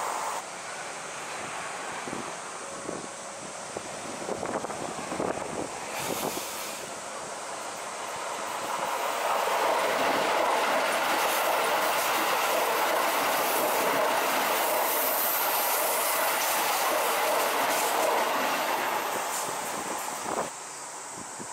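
A train approaches and roars loudly past close by.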